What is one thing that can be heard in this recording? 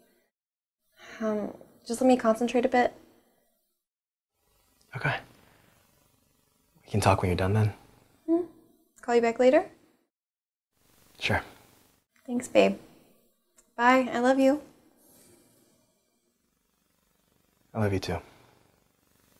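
A young woman speaks nearby in short, calm phrases with pauses between them.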